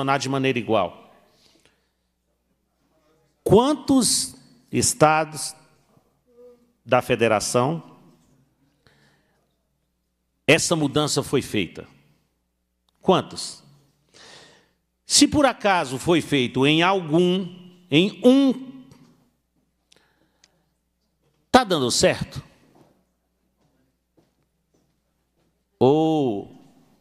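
A middle-aged man speaks into a microphone with animation, in short bursts with pauses.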